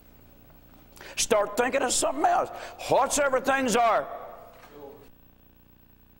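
A middle-aged man speaks with animation into a microphone in a room with some echo.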